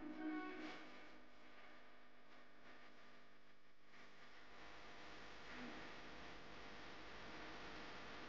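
Fountain jets of water splash and rush steadily.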